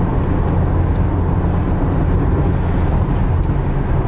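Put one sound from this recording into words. A windscreen wiper swipes across the glass.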